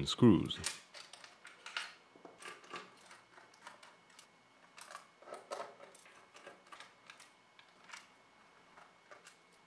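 A screwdriver scrapes and clicks against metal screws.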